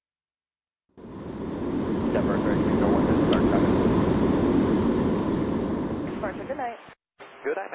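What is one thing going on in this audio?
A jet engine roars loudly as a plane passes overhead, then fades.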